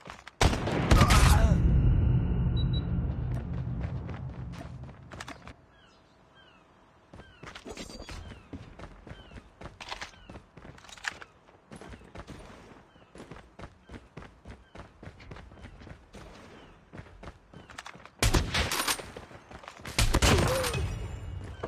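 A sniper rifle fires with a loud, echoing boom.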